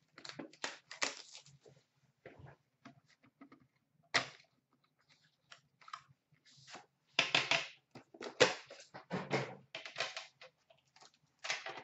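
Cardboard boxes rustle and knock as hands handle them.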